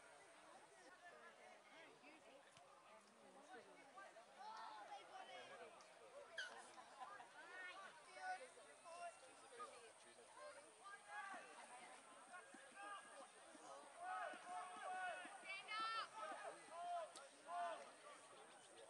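Teenage boys shout and call out to each other outdoors.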